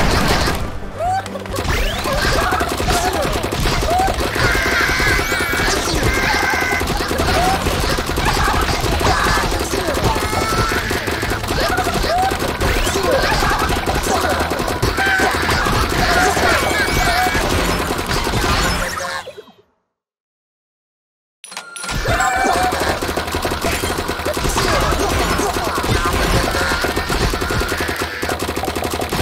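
Game sound effects of splashing blasts and impacts burst in quick succession.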